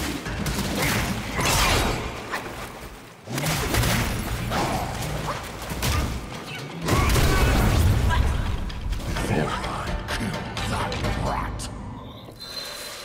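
Heavy blows and clashing strikes land in a fight.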